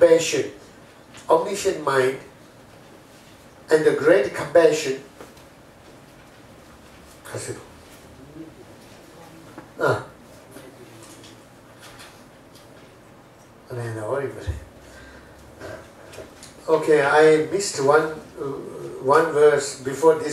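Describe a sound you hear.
A middle-aged man speaks calmly into a clip-on microphone, pausing between phrases.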